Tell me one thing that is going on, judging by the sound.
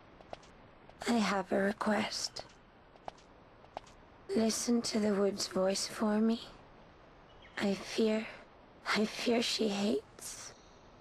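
A woman speaks calmly and softly through a microphone.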